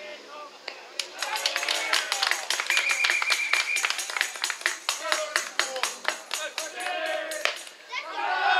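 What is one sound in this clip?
Hands clap quickly and repeatedly.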